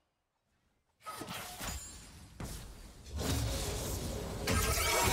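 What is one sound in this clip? Magic blasts and weapon clashes of a battle crackle and boom.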